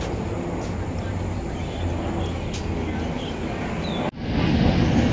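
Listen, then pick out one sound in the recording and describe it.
Footsteps tap on paving nearby.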